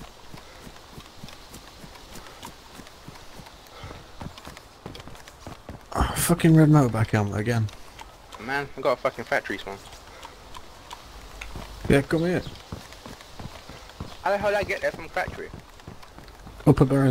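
Footsteps run over grass and then a paved road.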